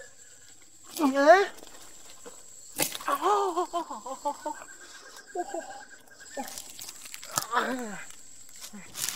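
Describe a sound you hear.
A young man shouts and grunts with effort.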